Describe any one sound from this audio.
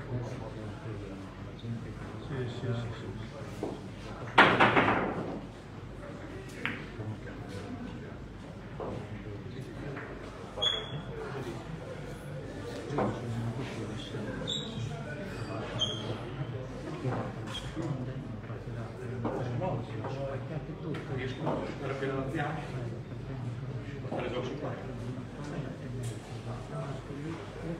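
Billiard balls click against each other on a table.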